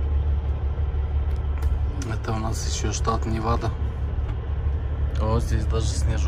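A truck engine rumbles low and steady from inside the cab.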